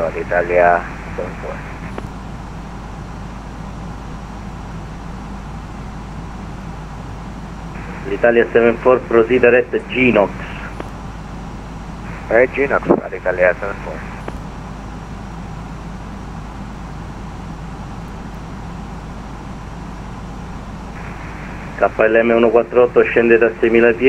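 A jet airliner's engines drone steadily from inside the cockpit.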